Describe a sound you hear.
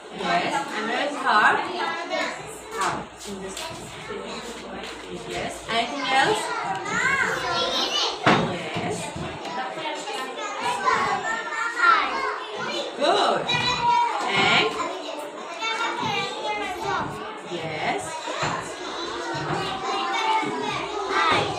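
Other young children chatter in the background.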